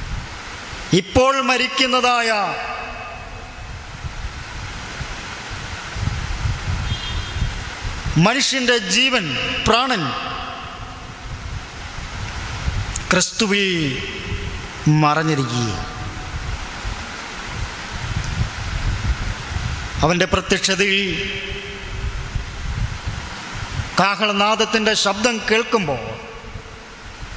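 A man speaks into a microphone in short bursts, with long pauses between them.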